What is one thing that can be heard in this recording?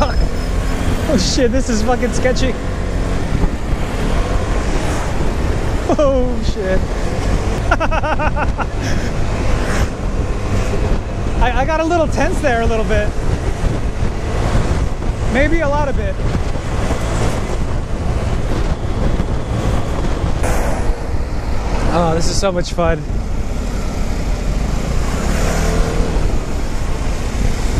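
Cars and trucks rumble past in traffic.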